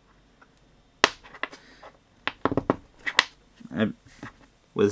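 Small parts click and tap as they are handled.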